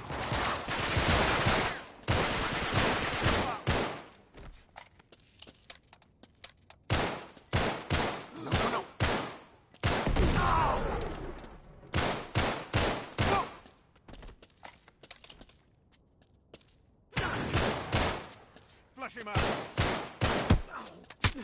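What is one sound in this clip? Gunshots fire in rapid bursts, echoing off stone walls.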